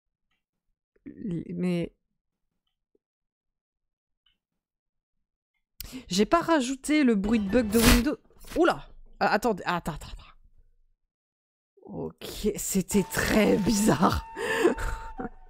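A young woman speaks with animation close to a microphone.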